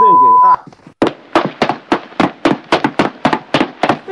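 A rifle fires in a quick, even series of shots.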